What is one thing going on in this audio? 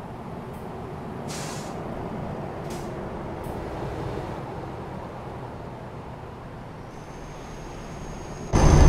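A truck engine rumbles steadily as it drives along.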